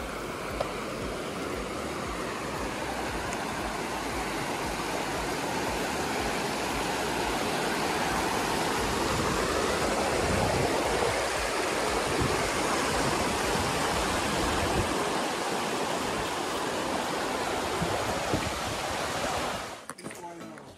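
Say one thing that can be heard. A fast stream rushes loudly over rocks.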